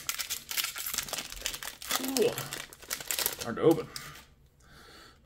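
A foil wrapper crinkles and rustles loudly close by.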